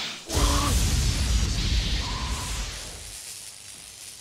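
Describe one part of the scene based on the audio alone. Electricity crackles and roars loudly.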